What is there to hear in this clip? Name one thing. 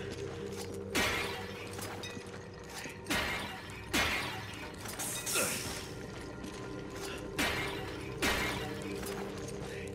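Clay pots shatter one after another with sharp crashes.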